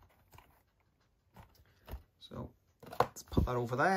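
A plastic case is set down with a light knock on a wooden floor.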